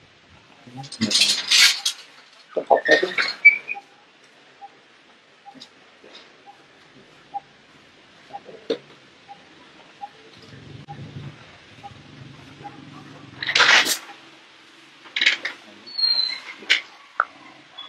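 A baby monkey squeaks in short, high cries.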